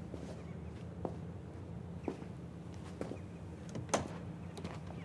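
A man's footsteps thud softly on a hard floor.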